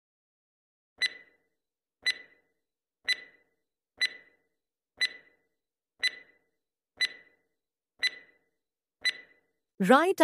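A countdown clock ticks steadily, once a second.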